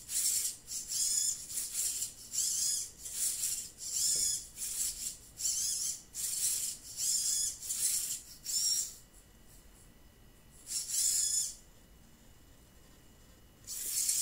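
Small servo motors whine in short, high bursts as a robot moves its arms.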